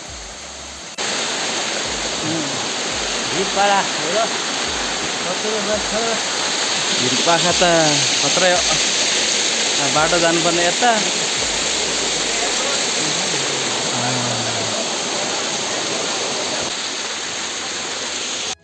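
A waterfall splashes and rushes steadily.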